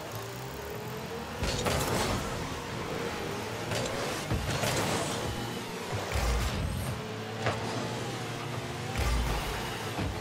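A game car's engine hums and whines steadily.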